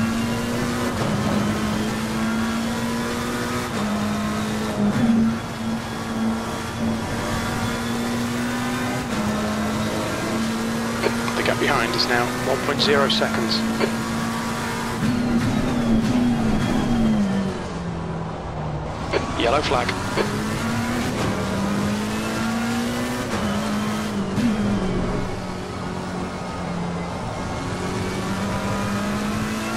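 A racing car engine roars steadily, rising in pitch as it speeds up and dropping as it shifts and brakes.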